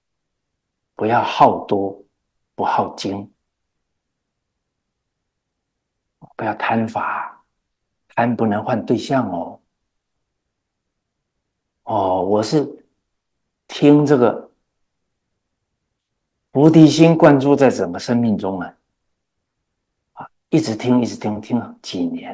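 An older man speaks calmly and with emphasis, close to a microphone, in short phrases with pauses.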